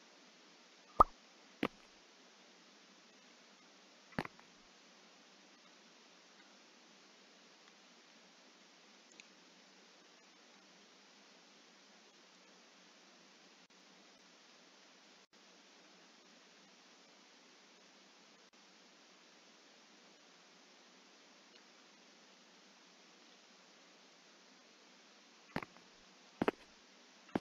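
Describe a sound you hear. Soft interface clicks sound a few times.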